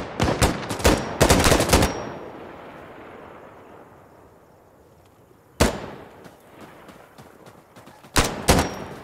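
A rifle fires in short bursts, with sharp shots echoing outdoors.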